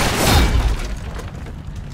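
Wooden planks crash and splinter as they break.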